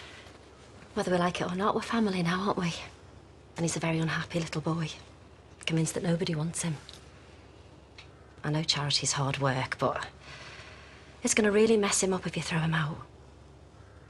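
A woman talks calmly and closely.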